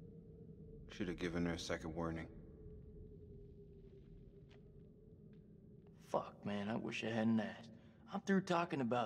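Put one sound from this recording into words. A young man speaks in a low, tense voice, close by.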